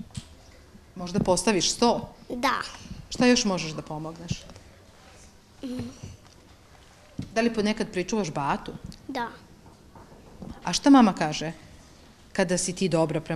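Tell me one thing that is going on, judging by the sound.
A young girl speaks softly and shyly close to a microphone.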